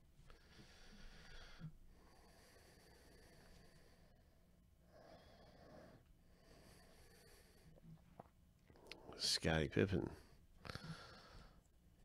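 Cards rustle and slide against each other.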